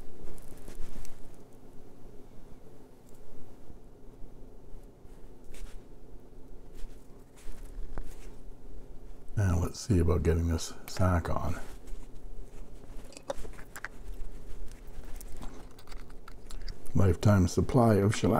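Small parts click and rustle softly as hands handle them.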